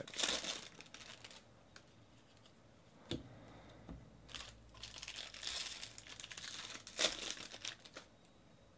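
A foil wrapper crinkles and rustles as hands tear it open.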